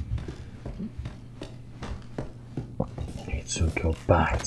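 Footsteps creak on wooden stairs.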